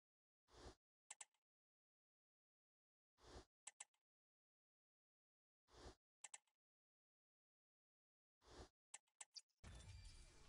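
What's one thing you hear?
Soft game menu clicks tick every few seconds.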